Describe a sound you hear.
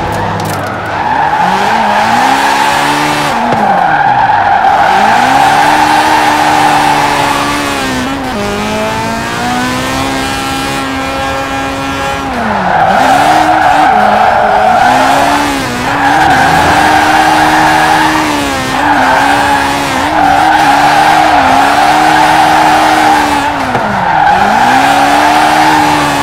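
Tyres screech while sliding through bends.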